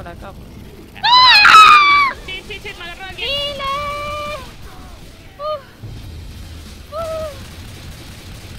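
A young woman shrieks and exclaims excitedly close to a microphone.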